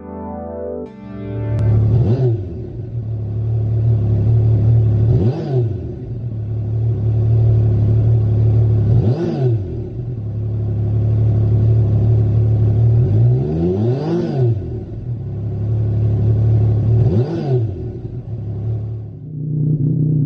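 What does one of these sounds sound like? A motorcycle engine idles loudly through its exhaust.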